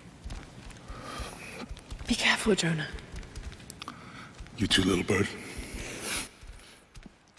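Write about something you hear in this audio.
A man speaks calmly and closely.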